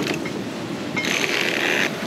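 A sail flaps and rustles in the wind.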